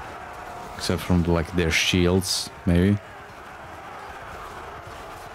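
Men shout in a large battle.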